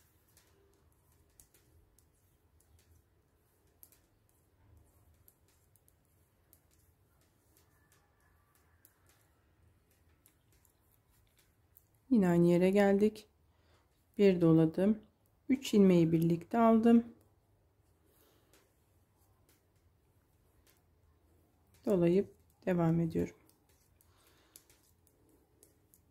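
Knitting needles click softly together.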